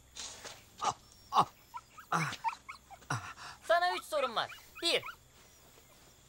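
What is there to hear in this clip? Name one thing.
A middle-aged man groans and speaks weakly, close by.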